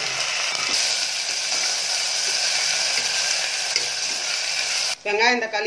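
A metal spoon scrapes and stirs against the side of a pot.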